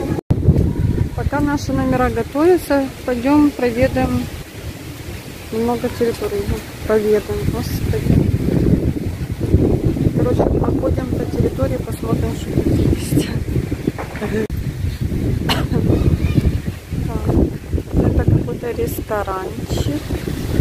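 A middle-aged woman talks with animation close to the microphone.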